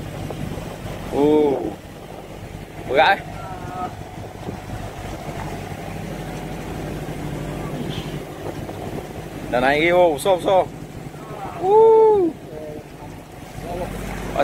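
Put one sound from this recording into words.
Water splashes and churns against the side of a boat.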